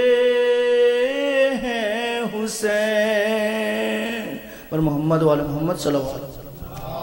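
A young man chants in a long, wavering melodic voice through a microphone in an echoing room.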